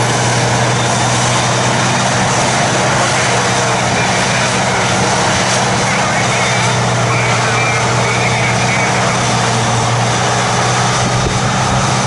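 Chopped crop rushes through a harvester's spout into a trailer.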